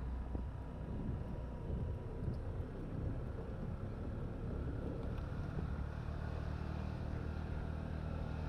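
Bicycle tyres roll on pavement.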